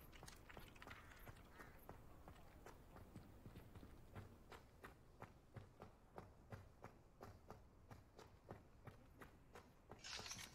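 Quick footsteps run on a hard stone floor.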